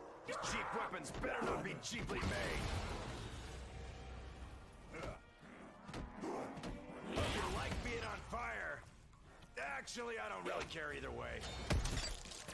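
Monsters growl and snarl close by.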